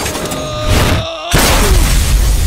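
A man crashes against a metal wall with a heavy thud.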